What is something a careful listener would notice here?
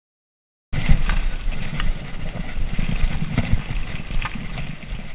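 A bicycle frame clicks and rattles over bumps.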